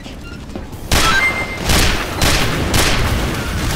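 Revolver shots crack in quick succession.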